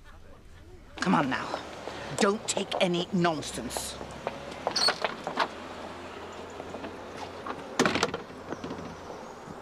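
An elderly woman speaks outdoors.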